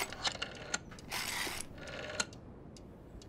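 A rotary telephone dial whirs and clicks.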